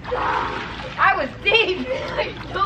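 A child shouts excitedly from across the pool.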